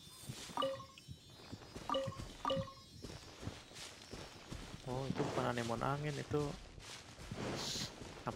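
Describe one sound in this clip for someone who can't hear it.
Soft footsteps run over grass.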